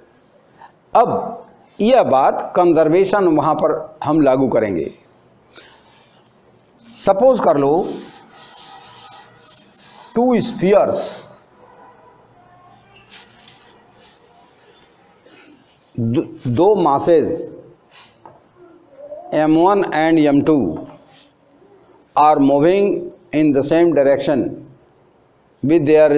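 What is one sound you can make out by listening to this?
An elderly man lectures calmly and clearly, close by.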